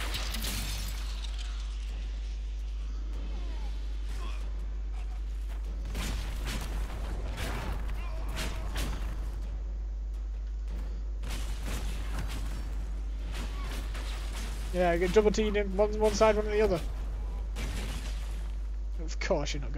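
Spells crackle and burst in quick bursts of combat.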